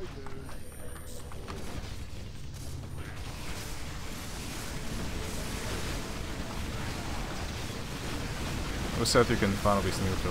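Battle sounds of clashing weapons and spells rumble on.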